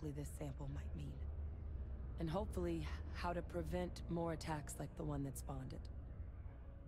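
A young woman speaks calmly and clearly, close up.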